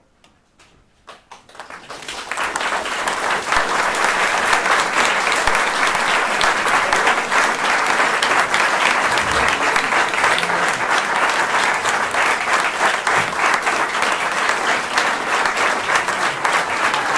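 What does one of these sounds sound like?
An audience applauds loudly in an echoing hall.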